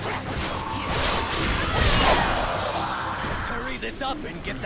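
Blades clash and slash in a fierce fight.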